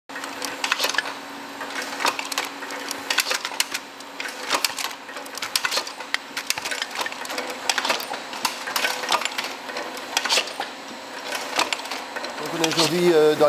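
A machine clatters and clicks steadily.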